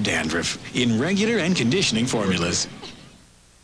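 A man speaks cheerfully, close by.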